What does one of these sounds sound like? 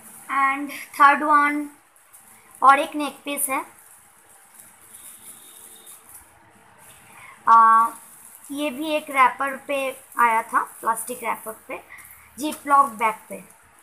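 A plastic bag crinkles under a hand.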